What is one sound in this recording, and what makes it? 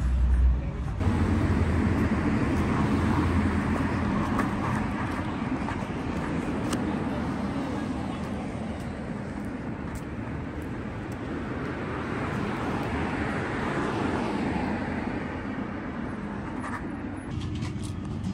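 Cars drive past on a nearby street.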